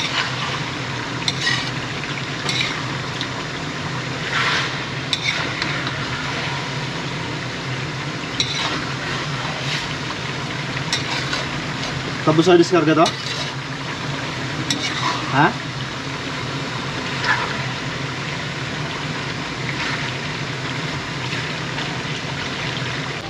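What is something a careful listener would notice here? Food sizzles and crackles in a hot pan.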